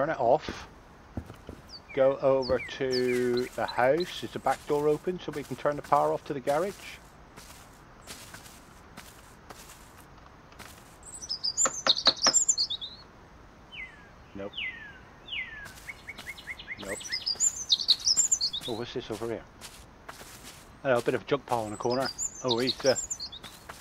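Footsteps tread across a hard floor and a wooden deck.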